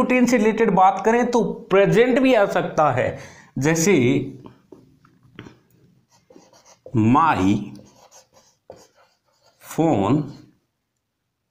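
A man speaks clearly and with animation, as if teaching, close by.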